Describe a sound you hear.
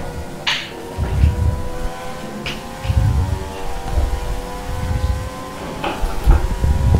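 A racing car engine whines at high revs, shifting pitch slightly.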